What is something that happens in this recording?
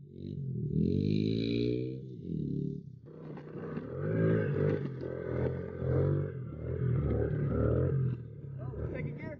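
A dirt bike engine revs up and down, rising and falling in pitch.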